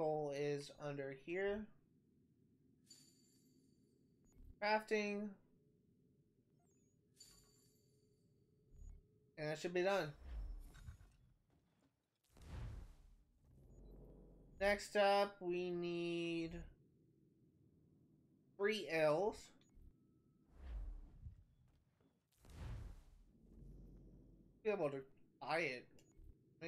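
A young man talks casually into a nearby microphone, in short bursts.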